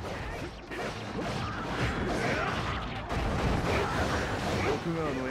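Swords clash and slash repeatedly in a busy battle.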